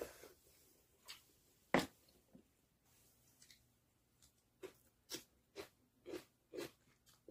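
A woman chews with wet smacking sounds.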